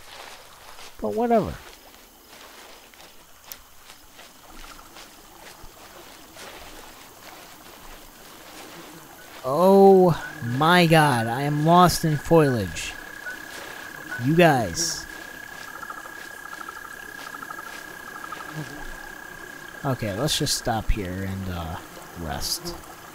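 A small creature gives repeated shrill squawking calls.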